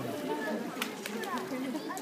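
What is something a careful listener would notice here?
A polar bear paddles through water with soft splashes.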